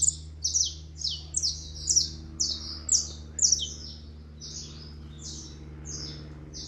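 A saffron finch sings in repeated high chirping phrases.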